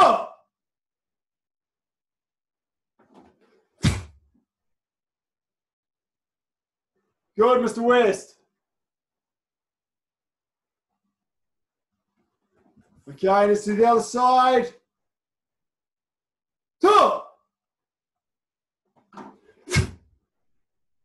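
A man calls out loudly in short bursts, close by.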